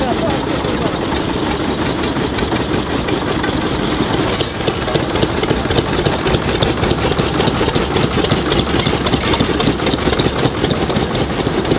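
Old tractor engines chug and rumble steadily nearby.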